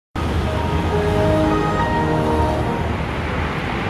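An electronic startup melody chimes from a motorcycle's dashboard.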